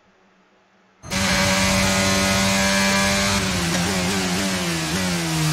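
A racing car engine roars loudly at high revs, shifting gears.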